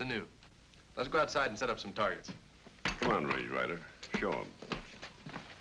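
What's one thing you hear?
An older man speaks gruffly.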